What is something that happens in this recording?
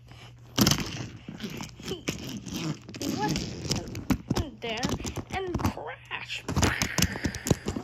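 A small plastic toy train rattles and clicks as it rolls along a plastic track.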